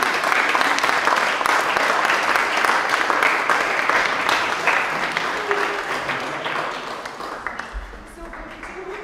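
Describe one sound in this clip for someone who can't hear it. An audience applauds loudly in an echoing room, then the clapping fades.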